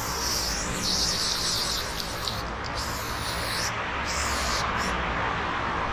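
A spray can hisses in short bursts.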